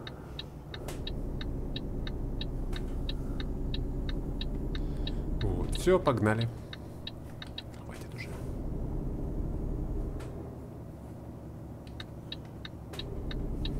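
A turn signal ticks in a quick, even rhythm.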